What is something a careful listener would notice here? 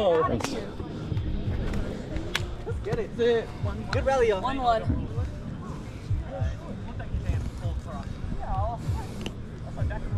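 A young woman talks casually nearby.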